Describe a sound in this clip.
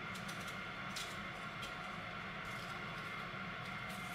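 A peeler scrapes the skin off a radish.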